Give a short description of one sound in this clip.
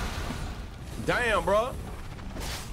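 A young man exclaims excitedly into a close microphone.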